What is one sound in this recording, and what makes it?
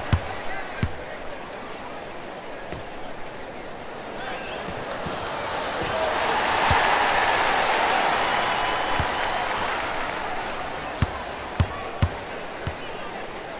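A basketball bounces with dull thumps on a wooden court.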